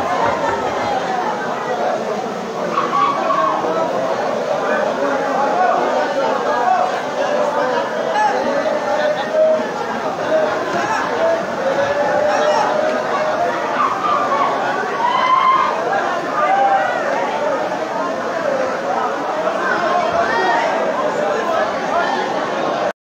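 A large crowd chatters and shouts loudly in an echoing hall.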